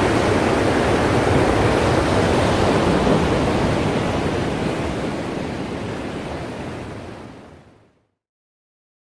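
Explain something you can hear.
Surf washes and churns steadily, then fades away.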